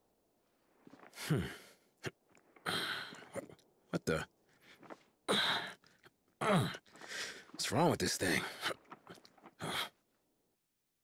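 A man speaks in a puzzled, grumbling voice.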